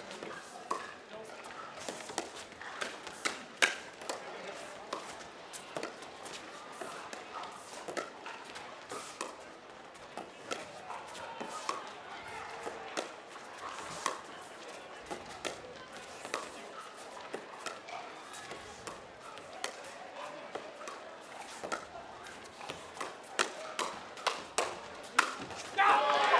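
Paddles pop sharply against a plastic ball in a fast rally.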